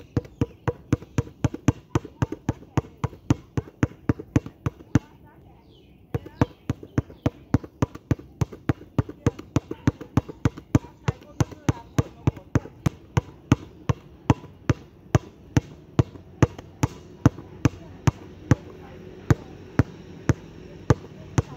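A basketball bounces quickly and steadily on a hard court outdoors.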